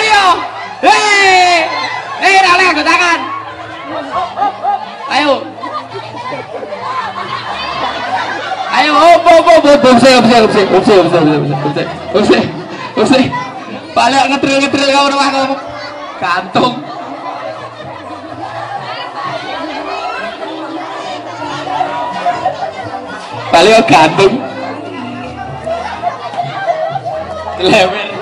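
A crowd of women and children shout and shriek excitedly nearby.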